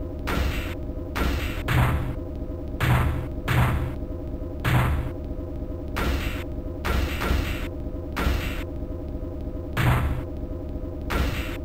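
Heavy metallic blows thud and clang in a fast fight.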